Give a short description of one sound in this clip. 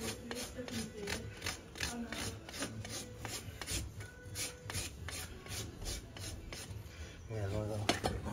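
A rasp files a horse's hoof in quick, steady strokes.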